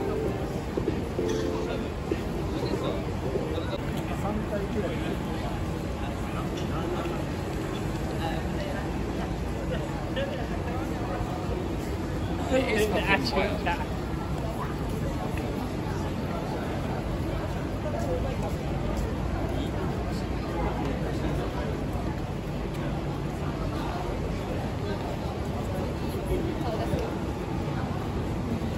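A crowd of people chatters and talks nearby outdoors.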